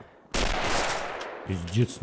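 A rifle bolt clicks as it is worked.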